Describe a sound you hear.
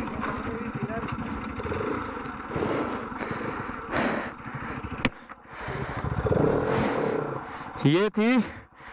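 A motorcycle engine rumbles at low speed close by.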